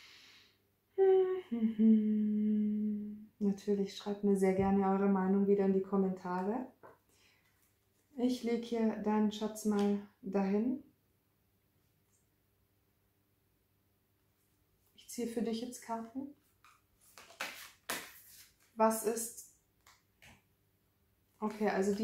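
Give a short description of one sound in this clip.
A young woman speaks calmly and warmly, close to a microphone.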